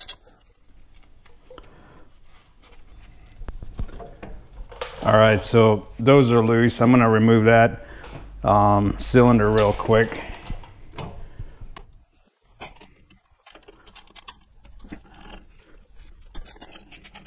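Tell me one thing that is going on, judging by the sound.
A wrench clicks and clanks against metal parts.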